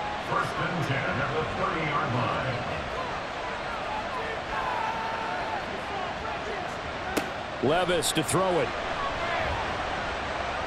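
A large crowd murmurs and cheers steadily.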